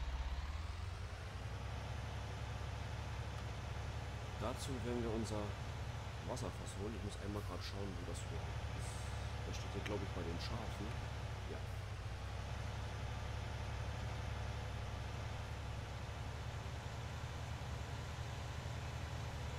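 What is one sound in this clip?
A tractor engine hums steadily at a low pitch.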